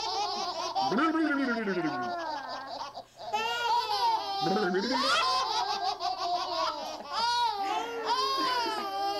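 Several babies laugh and squeal loudly close by.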